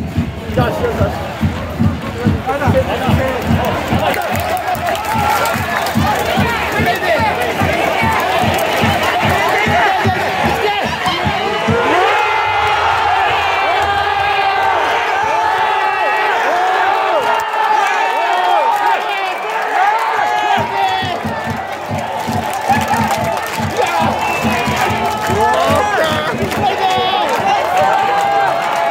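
A crowd drums steadily in the stands.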